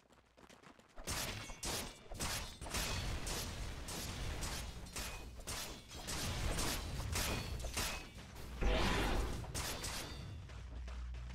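Swords clash and thud rapidly in a fight.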